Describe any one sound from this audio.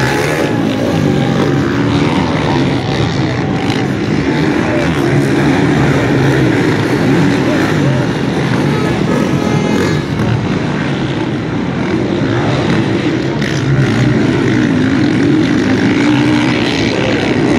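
A large outdoor crowd murmurs and chatters nearby.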